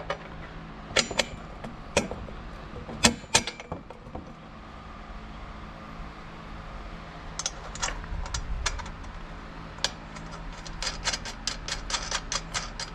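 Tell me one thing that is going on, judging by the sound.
Metal parts click and clatter as a hand fits a hose fitting into a bracket.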